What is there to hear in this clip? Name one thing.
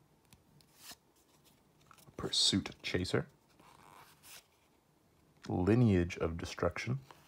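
Playing cards slide and rustle against each other in hand.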